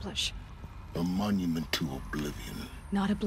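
A man answers in a low, calm voice.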